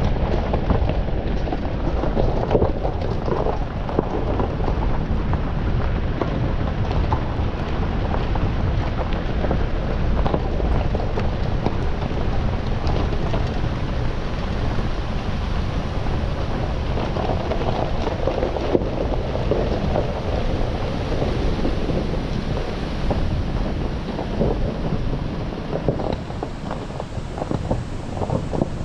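A vehicle engine rumbles steadily at low speed.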